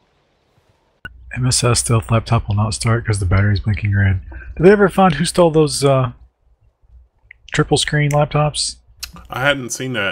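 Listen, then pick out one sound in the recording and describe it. A man talks with animation through a microphone.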